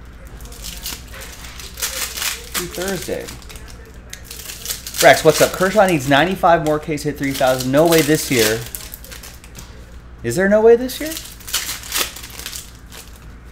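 Foil packs crinkle and rustle as they are torn open.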